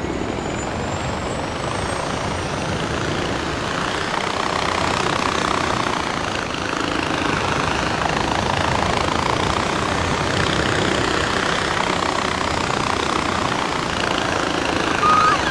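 Wind rushes steadily past while gliding along a zipline.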